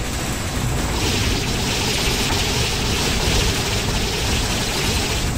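Rapid gunfire and fiery blasts roar loudly.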